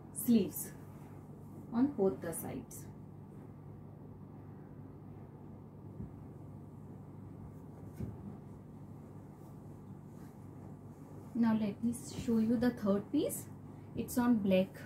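Cloth rustles as fabric is unfolded and laid down.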